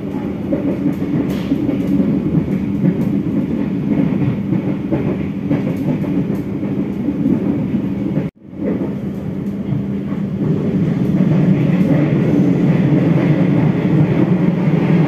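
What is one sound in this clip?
A train rumbles and rattles steadily along the rails.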